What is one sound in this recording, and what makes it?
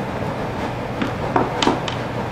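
Metal screwdriver bits clink together in a hand.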